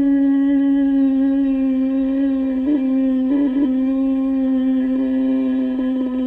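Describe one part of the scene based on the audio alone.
A soprano saxophone plays a long, steady held note that briefly wavers.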